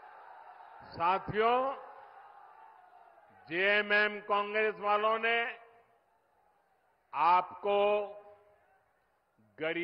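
An elderly man speaks forcefully into a microphone over loudspeakers.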